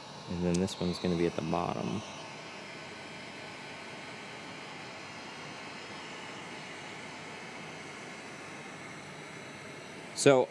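A heat gun blows with a steady whooshing hiss.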